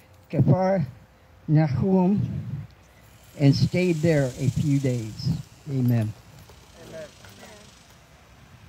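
A man chants aloud close by, outdoors.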